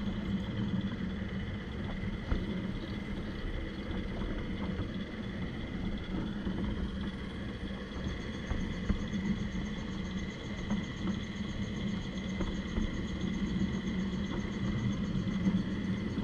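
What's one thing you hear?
A small train motor hums steadily while rolling along the rails.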